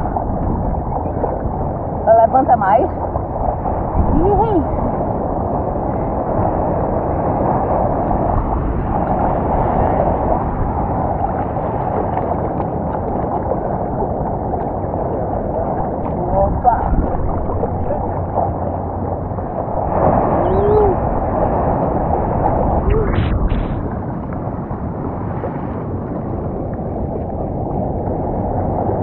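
Water sloshes and laps close by.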